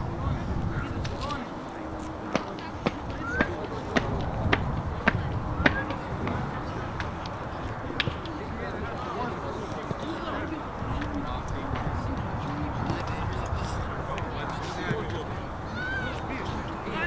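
Wind blows steadily across an open field.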